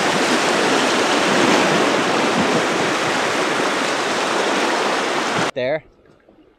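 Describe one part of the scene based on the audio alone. A river rushes and splashes loudly nearby.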